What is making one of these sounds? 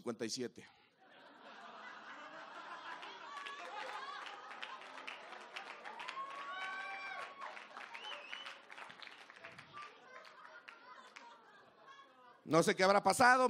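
An audience laughs and claps in a hall.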